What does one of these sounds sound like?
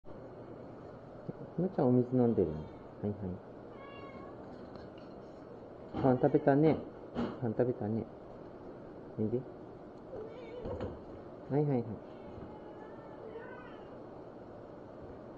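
A cat meows nearby.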